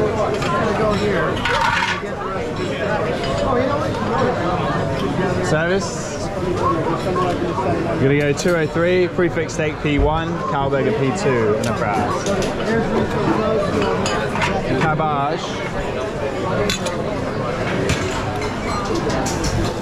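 Metal plates clink against a counter.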